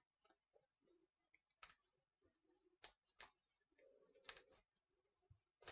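Paper rustles and tears as an envelope is opened.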